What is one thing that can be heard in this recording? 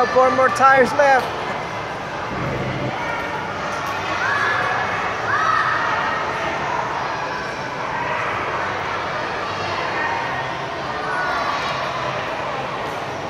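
Many voices of children and adults chatter and call out in a large echoing hall.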